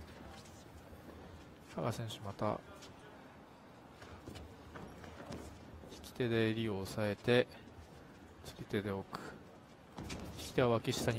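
Bare feet shuffle and thump on a padded mat.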